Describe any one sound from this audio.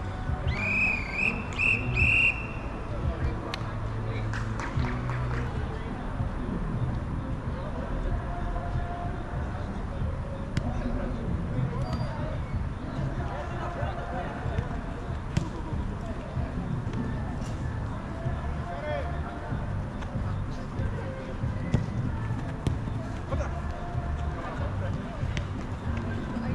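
Young men shout to each other at a distance outdoors.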